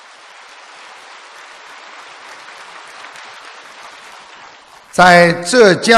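A large audience applauds in a hall.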